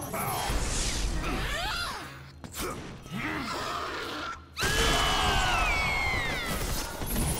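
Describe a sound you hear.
Heavy blows and slashes strike in a fight.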